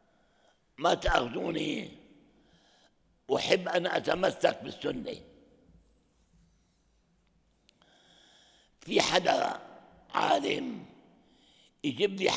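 An elderly man speaks calmly and slowly into a microphone, with pauses between phrases.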